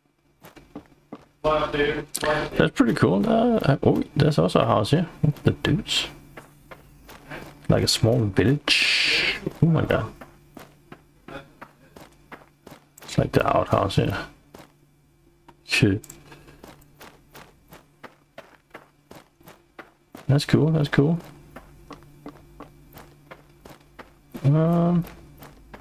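Footsteps fall on grass at a walking pace.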